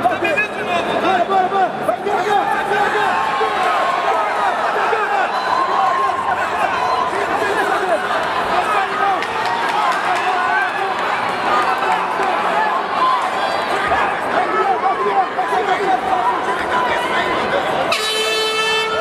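A large crowd shouts and cheers loudly.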